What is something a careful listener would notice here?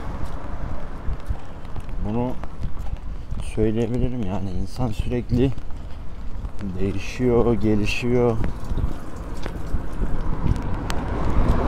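Light rain patters on wet pavement.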